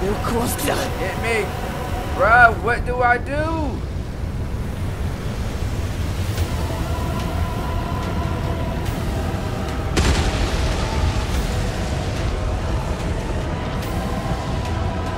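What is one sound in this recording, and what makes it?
Steam hisses and roars steadily.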